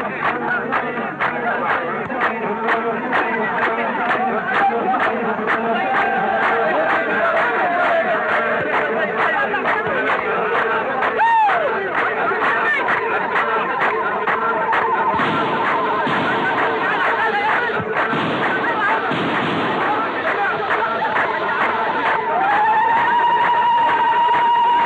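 A large outdoor crowd murmurs and cheers.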